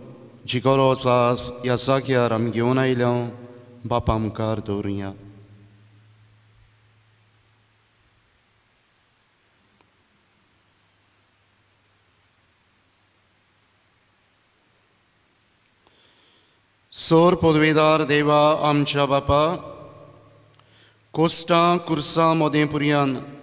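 A man prays aloud in a chanting voice through a microphone, echoing in a large hall.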